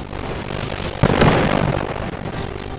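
A loud blast bursts nearby.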